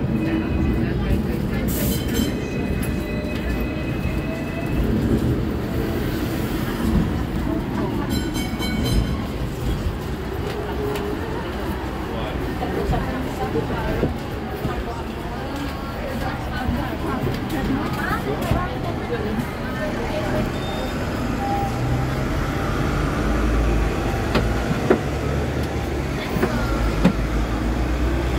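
A tram rumbles and rattles along its tracks.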